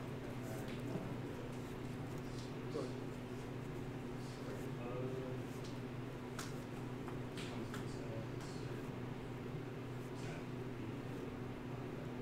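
Cards riffle and shuffle in a player's hands.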